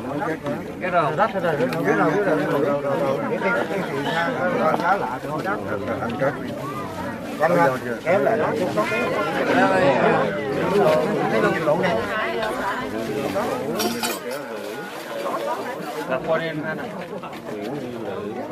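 A man chants a prayer in a steady, sing-song voice.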